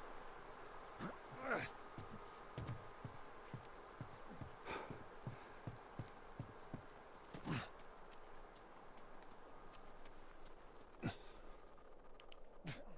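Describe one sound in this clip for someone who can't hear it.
Footsteps thud on wooden boards and snow at a quick pace.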